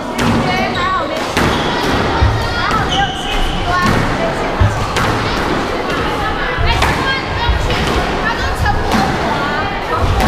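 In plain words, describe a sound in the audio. A squash ball smacks off rackets and walls in a quick rally, echoing in the court.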